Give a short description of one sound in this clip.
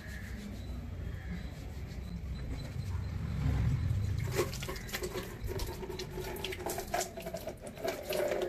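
A man rubs his wet hands together.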